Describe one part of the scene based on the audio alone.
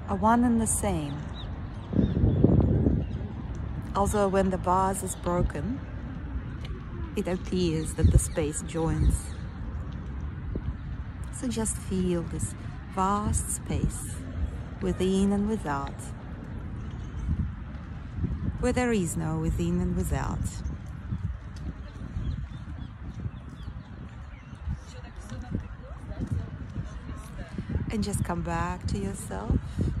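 A woman talks calmly and cheerfully, close to the microphone.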